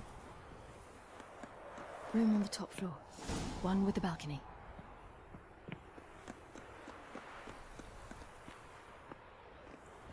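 Footsteps tread lightly across roof tiles.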